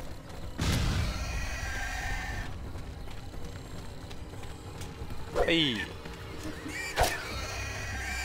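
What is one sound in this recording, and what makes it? Blades slash and flesh splatters in violent bursts.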